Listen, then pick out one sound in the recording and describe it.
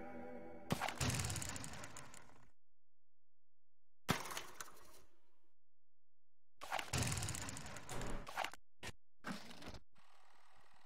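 Sharp whooshing menu effects sound in quick bursts.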